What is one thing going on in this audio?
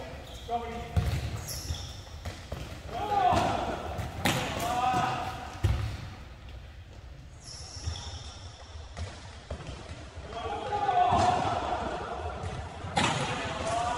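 A ball thuds on a wooden floor.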